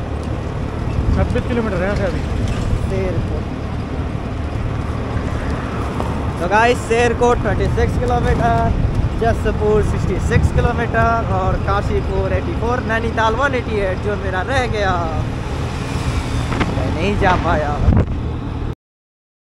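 A man talks close by over the wind.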